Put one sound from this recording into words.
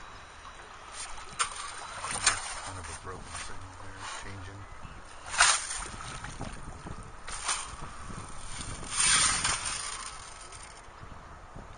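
A shovel scoops and splashes through shallow water and sand.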